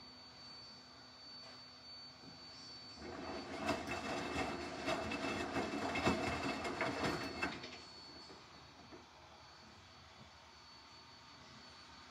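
A washing machine drum turns with a low hum.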